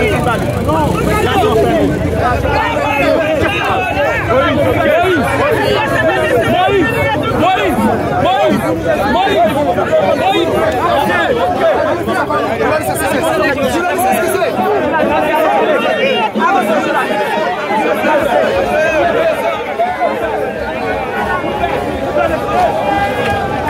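A large crowd of men and women shouts and chants outdoors, close by.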